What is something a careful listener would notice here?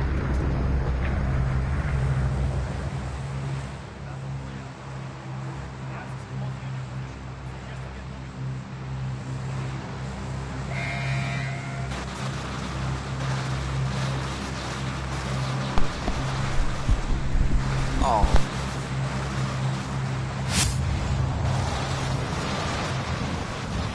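A large propeller plane drones steadily.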